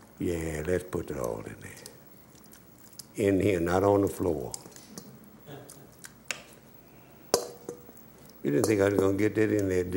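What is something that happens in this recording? Chunks of meat drop with soft thuds into a pot.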